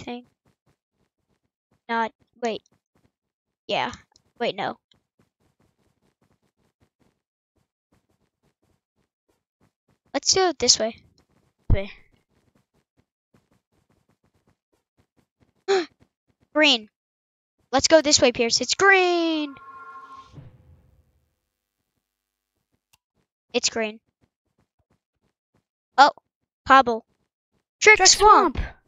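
A young boy talks with animation in short bursts, close to a microphone.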